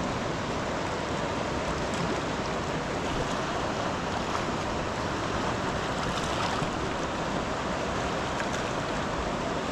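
A wide river rushes steadily over rocks nearby.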